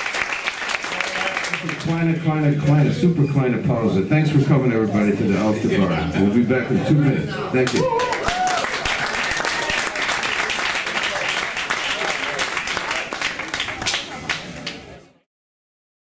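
A saxophone plays a jazz melody.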